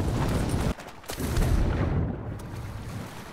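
Bubbles gurgle and water churns underwater.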